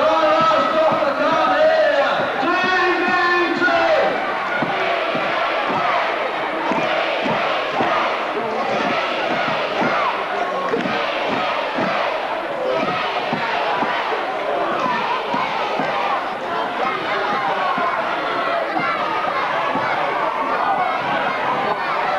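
A man speaks loudly and forcefully into a microphone, heard through loudspeakers in a large echoing hall.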